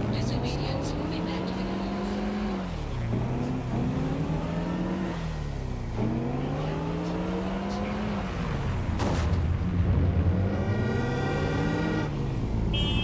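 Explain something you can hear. A car engine revs up and down as it shifts through gears.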